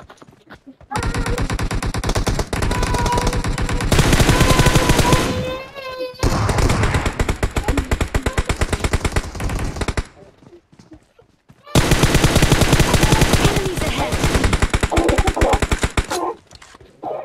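Automatic gunfire rattles in long rapid bursts.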